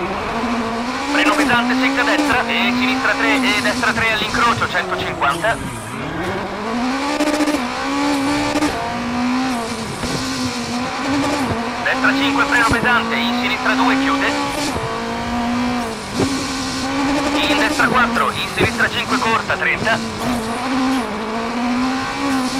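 A rally car engine revs at full throttle, shifting up and down through the gears.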